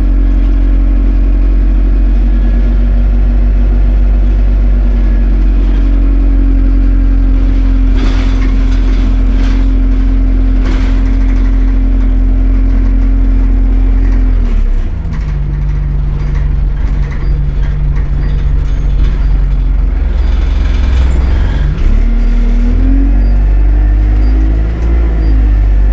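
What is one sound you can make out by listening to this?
A bus engine drones steadily, then drops and rises in pitch as the bus changes speed.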